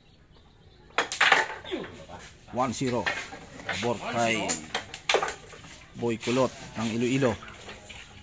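Men talk with animation close by.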